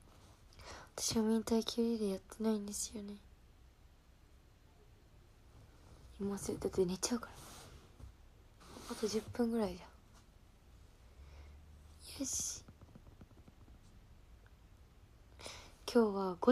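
A young woman speaks softly and close by, in short bursts.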